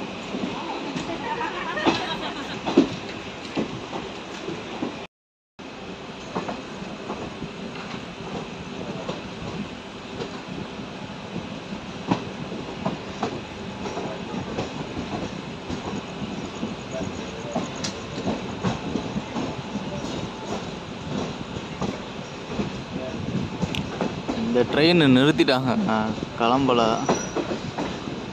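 Train wheels clatter over rail joints and points.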